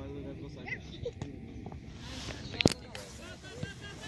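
A soccer ball is kicked with a dull thump.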